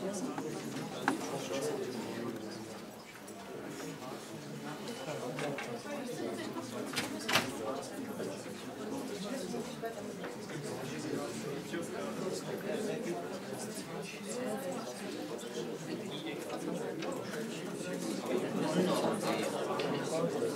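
A crowd of young people chatters in a room with a light echo.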